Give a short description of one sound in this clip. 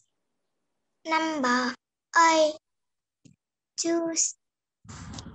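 A child speaks animatedly over an online call.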